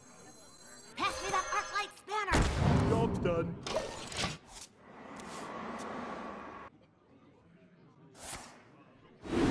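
Game sound effects chime and whoosh.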